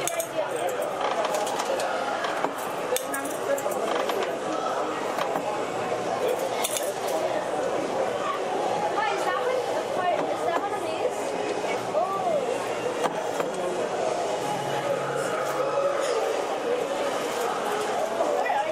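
A penny press machine's gears clank and grind as a coin is pressed.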